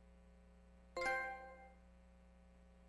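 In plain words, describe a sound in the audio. A bright chime rings out and fades.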